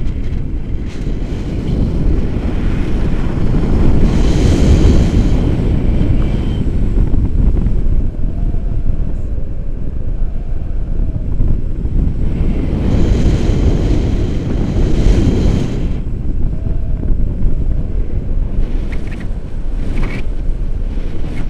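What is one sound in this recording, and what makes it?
Strong wind roars and buffets a microphone.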